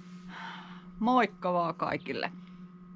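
An older woman speaks calmly close to the microphone.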